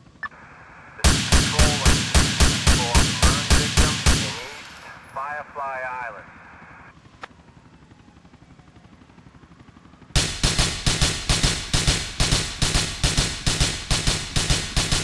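An automatic gun fires rapid, loud bursts in an echoing hall.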